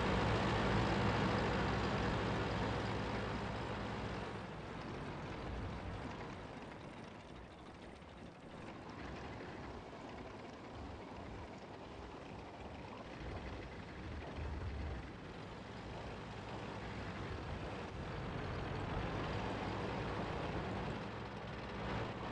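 A tank engine rumbles steadily as it drives.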